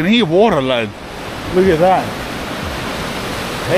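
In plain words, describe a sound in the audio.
A river rushes loudly.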